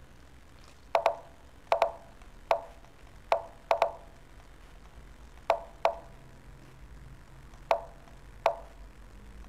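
Short sharp clicks sound as chess pieces are moved in a game.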